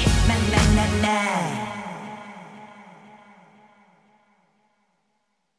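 A boy sings into a microphone, his last note fading away.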